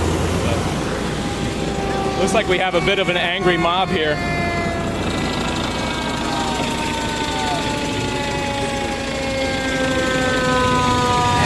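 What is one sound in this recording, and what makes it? A fire truck siren wails and slowly winds down.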